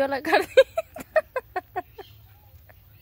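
A young woman gulps down a drink in quick swallows.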